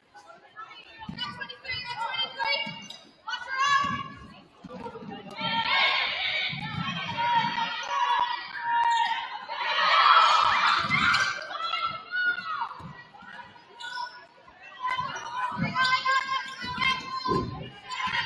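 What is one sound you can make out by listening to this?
Spectators in an echoing gym cheer and shout.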